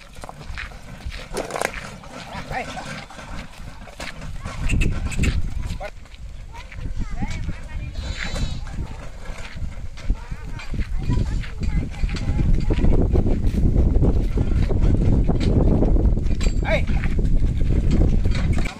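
Wooden cart wheels rumble and creak over the dirt.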